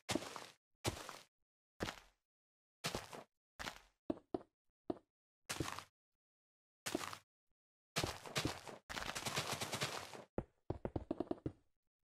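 Stone blocks crunch as they break.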